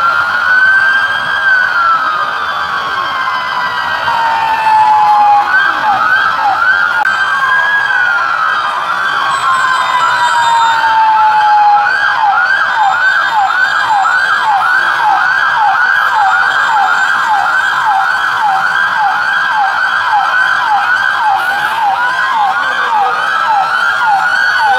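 Police sirens wail and yelp rapidly nearby.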